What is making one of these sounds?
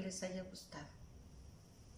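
A woman speaks calmly, close by.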